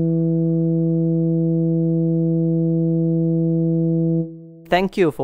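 A euphonium holds a long, steady low note.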